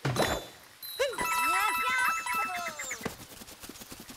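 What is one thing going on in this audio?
Bright coin chimes ring out in quick succession.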